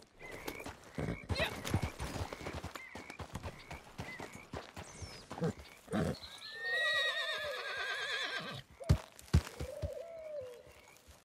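Horse hooves thud on dirt.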